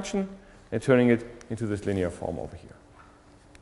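A man lectures calmly through a microphone.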